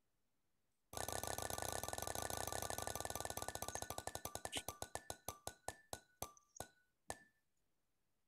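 A prize wheel ticks rapidly as it spins, then slows and stops.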